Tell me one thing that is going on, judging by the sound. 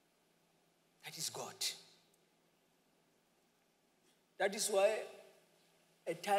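A man speaks in short phrases, with pauses between them.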